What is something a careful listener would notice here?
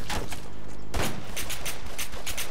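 A rifle fires a single sharp shot nearby.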